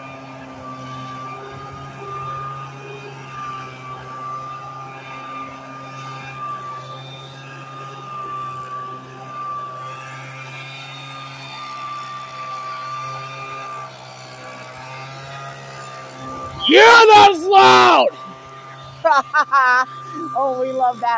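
A leaf blower whirs steadily close by.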